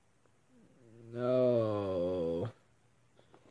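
A young man groans in a long, drawn-out voice.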